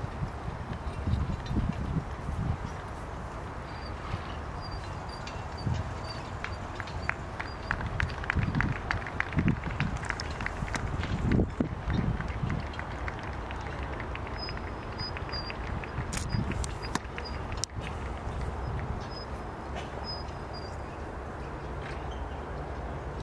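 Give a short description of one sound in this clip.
Horse hooves thud softly on sand.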